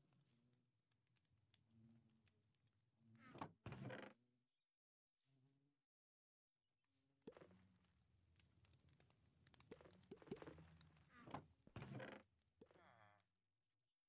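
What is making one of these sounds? A wooden chest creaks open and shut.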